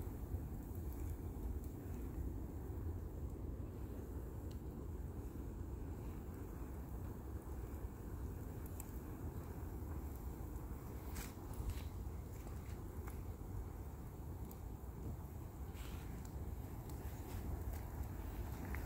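A fire roars steadily outdoors.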